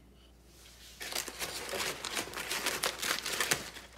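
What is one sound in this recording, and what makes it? Packing paper rustles and crinkles loudly, close by.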